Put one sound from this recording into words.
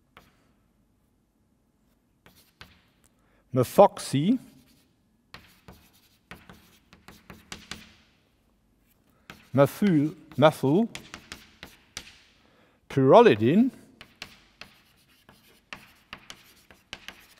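Chalk taps and scrapes on a board.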